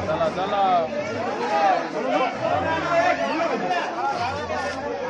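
A crowd of men talks and calls out loudly all around, close by.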